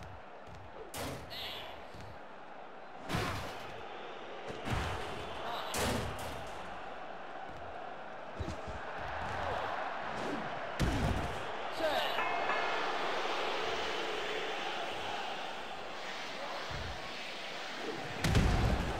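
Heavy thuds of bodies slamming down ring out now and then.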